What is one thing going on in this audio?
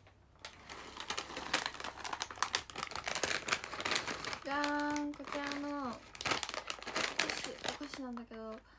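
A plastic snack bag crinkles and rustles in someone's hands.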